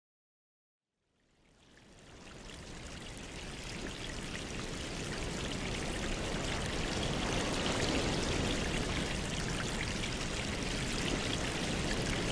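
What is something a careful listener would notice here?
Air bubbles stream and gurgle steadily through water.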